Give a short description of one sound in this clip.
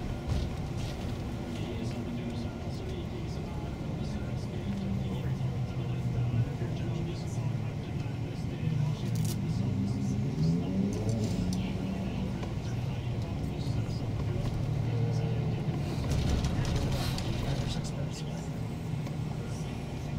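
A shuttle bus engine rumbles as the bus drives, heard from inside.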